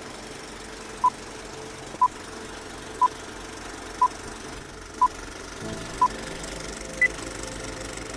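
Short steady beeps sound once every second, ending with one higher beep.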